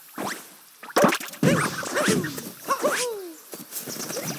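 Bright electronic game sound effects chime and swoop.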